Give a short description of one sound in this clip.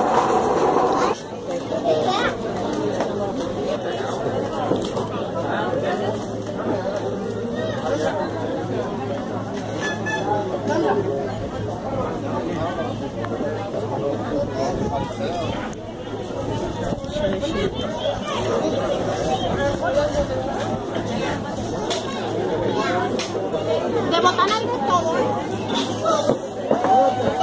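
A crowd of people chatter.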